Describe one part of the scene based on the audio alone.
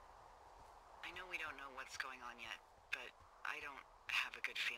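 A woman speaks calmly over a two-way radio.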